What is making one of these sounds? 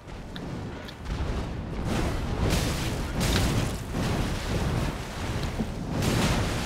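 Heavy blows clash and thud in a fierce fight.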